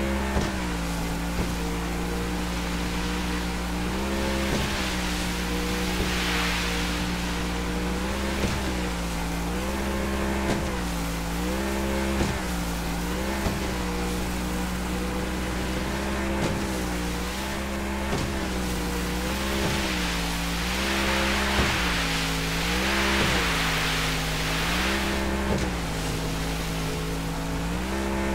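Water sprays and splashes against a speeding boat's hull.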